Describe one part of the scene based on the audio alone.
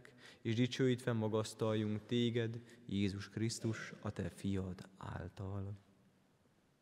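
A man chants in a steady singing voice through a microphone in an echoing hall.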